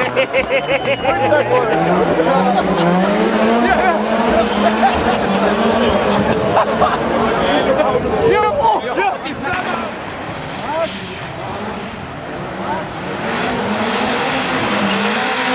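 A rally car engine drones and revs in the distance.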